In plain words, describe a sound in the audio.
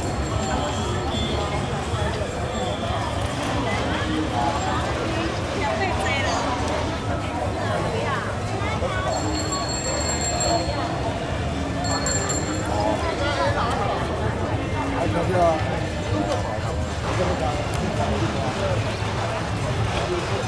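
Many footsteps shuffle on a street.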